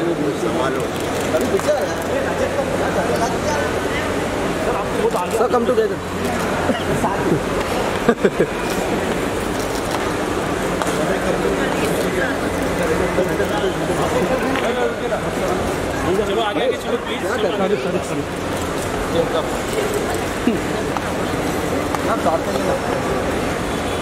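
A busy crowd murmurs and chatters in a large echoing hall.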